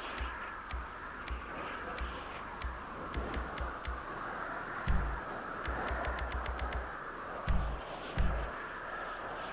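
Short menu clicks tick again and again.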